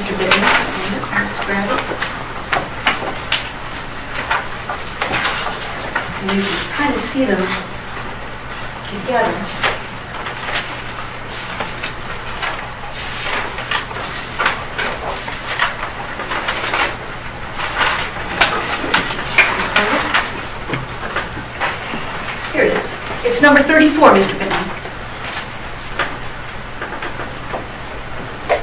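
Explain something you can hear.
A woman speaks steadily and formally in a large room with some echo.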